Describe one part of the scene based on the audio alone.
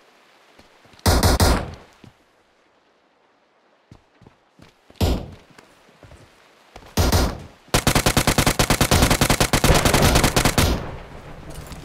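Automatic rifle fire rattles in short, rapid bursts.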